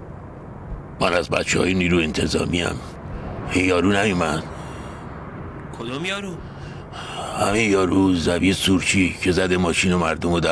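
A middle-aged man speaks tensely and close by.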